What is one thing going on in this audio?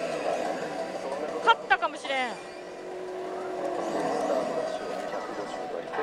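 Voices from a slot machine's loudspeaker speak dramatically.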